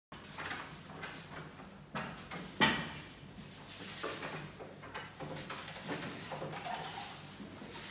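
A heavy object bumps and scrapes against a hard floor.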